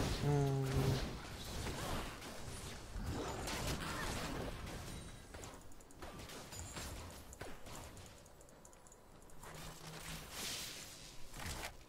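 Weapons strike and clash in quick blows.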